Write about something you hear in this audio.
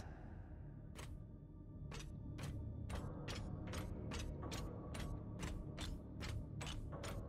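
Heavy boots step steadily on a hard floor.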